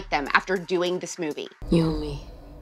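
A young woman speaks calmly and clearly.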